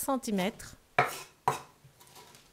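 A cleaver chops on a wooden board.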